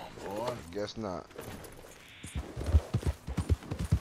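A horse's hooves thud as it gallops.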